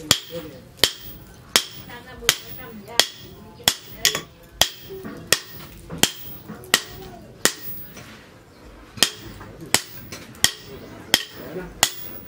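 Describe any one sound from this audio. A hammer strikes hot metal on an anvil in steady, ringing blows.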